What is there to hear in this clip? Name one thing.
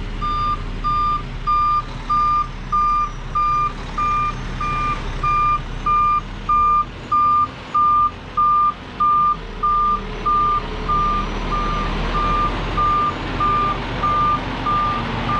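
A truck's reversing alarm beeps steadily and rapidly.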